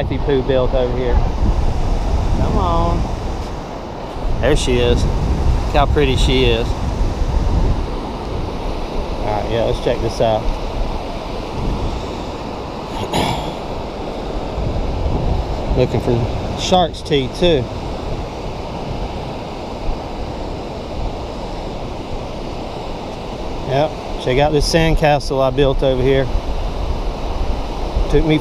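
Waves wash gently onto the shore.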